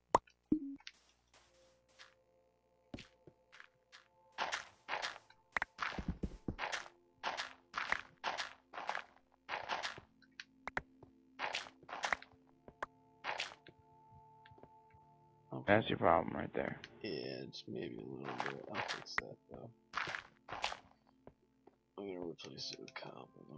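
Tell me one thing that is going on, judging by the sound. A shovel digs into gravel and dirt with quick, repeated crunching thuds.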